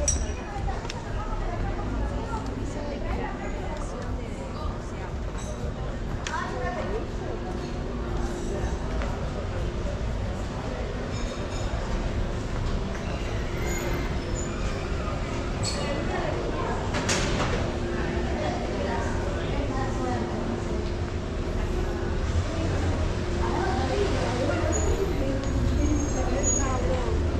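A low murmur of distant voices and bustle carries through an open space.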